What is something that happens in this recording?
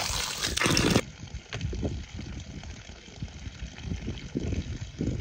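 Water trickles from a tap onto the ground outdoors.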